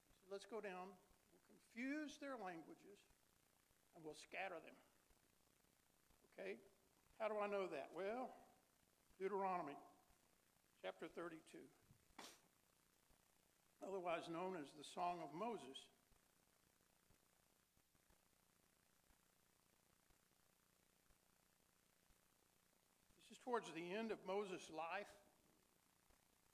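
An older man speaks calmly into a microphone, pausing between phrases.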